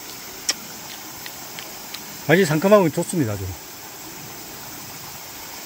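A shallow stream trickles gently over stones.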